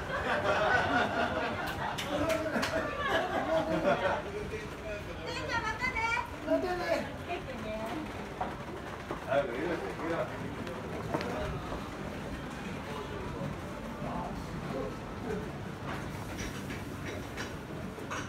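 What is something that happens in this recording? People walk on a hard floor.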